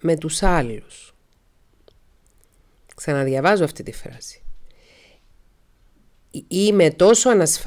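A woman speaks calmly in short phrases, close to a microphone.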